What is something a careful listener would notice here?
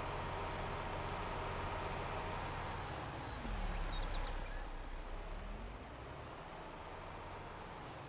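A heavy log scrapes and rumbles as it is dragged over the ground.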